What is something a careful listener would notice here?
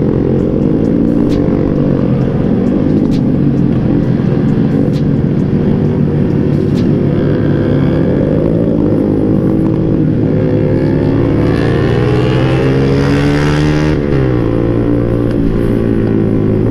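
A motorcycle engine hums close by, rising and falling as it revs.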